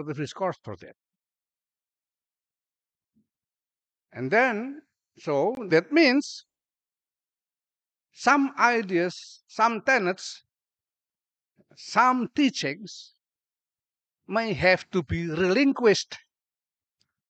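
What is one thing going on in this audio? An older man speaks calmly and slowly through a microphone, pausing between phrases.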